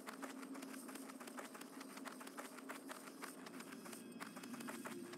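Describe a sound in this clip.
A mount's feet patter quickly and steadily on the ground.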